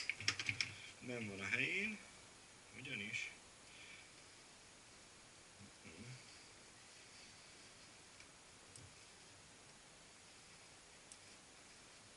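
Metal parts of a bicycle wheel click as hands work on it.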